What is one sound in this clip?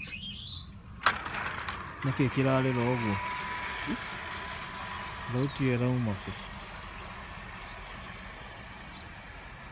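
An electric gate motor whirs as a gate swings open.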